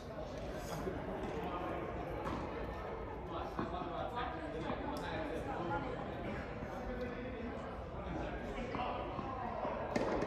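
Tennis shoes squeak and shuffle on the court.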